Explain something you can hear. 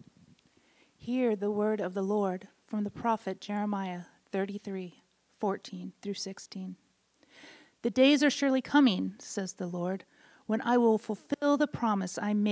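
A woman reads aloud clearly into a microphone, in a room with a slight echo.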